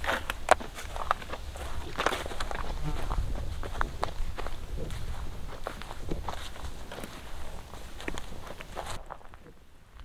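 A brush fire crackles and pops nearby.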